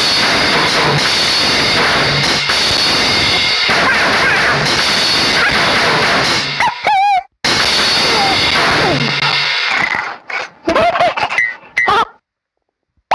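Drums and cymbals are played in a fast, busy beat.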